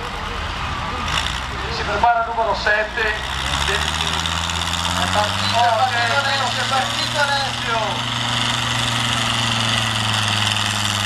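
A tractor engine roars and revs up as it pulls a heavy load.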